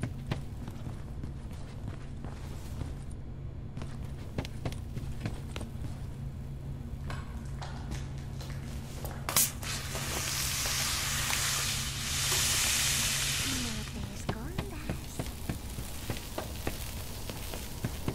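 Light footsteps patter on a hard floor.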